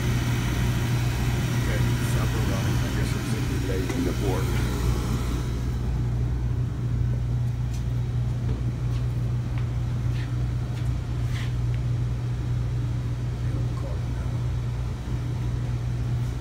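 A furnace hums steadily with a low electrical drone.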